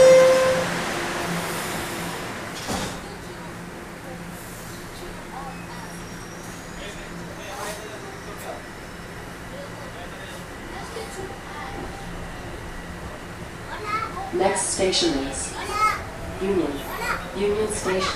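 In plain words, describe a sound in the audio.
A subway train hums steadily as it rides along.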